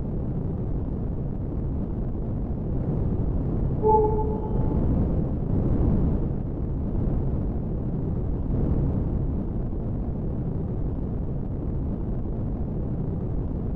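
A spaceship engine hums with a low, steady rumble.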